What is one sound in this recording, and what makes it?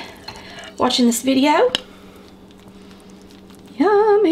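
A metal spoon scrapes against a glass baking dish.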